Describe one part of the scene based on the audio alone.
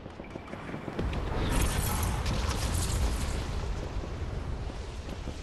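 Wind rushes past in a loud, low roar.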